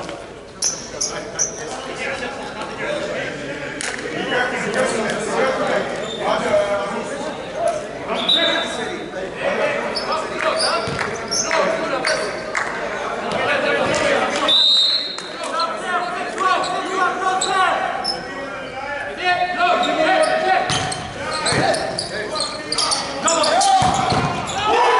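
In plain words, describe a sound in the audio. Men call out and talk, echoing in a large hall.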